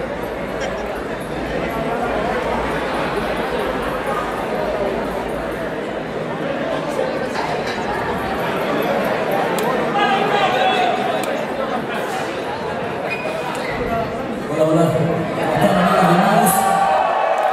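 A rock band plays loudly through speakers in a large echoing hall.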